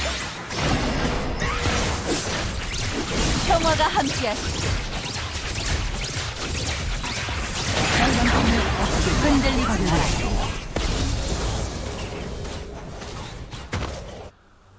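Game weapons clash and strike repeatedly.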